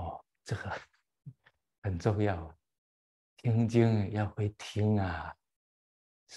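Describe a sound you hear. An elderly man laughs heartily.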